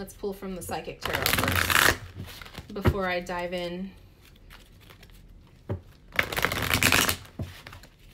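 Cards shuffle and riffle between hands close by.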